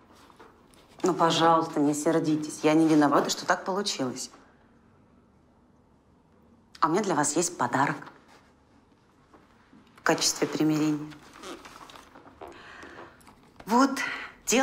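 A young woman speaks pleadingly, close by.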